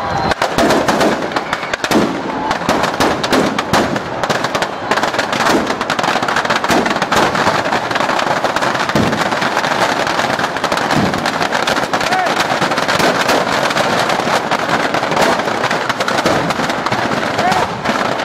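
A large bonfire roars.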